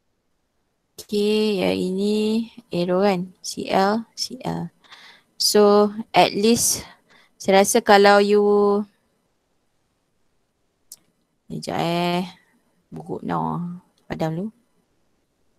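A young woman speaks calmly through a headset microphone on an online call.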